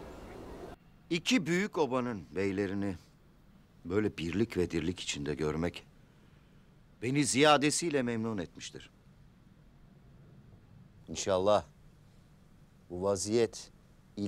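A middle-aged man speaks slowly and gravely, with pauses.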